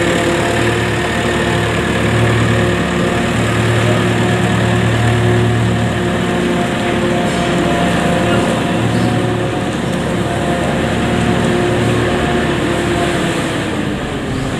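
A farm machine's engine runs with a steady low hum, then winds down.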